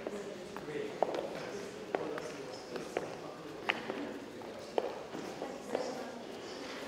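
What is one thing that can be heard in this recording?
High heels click on a hard floor.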